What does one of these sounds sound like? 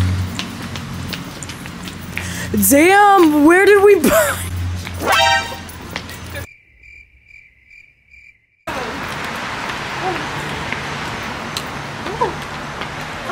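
High heels click on a pavement.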